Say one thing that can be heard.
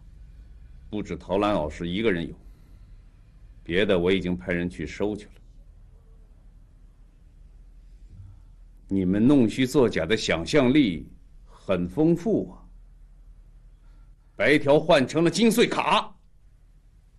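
A middle-aged man speaks calmly and firmly, close by.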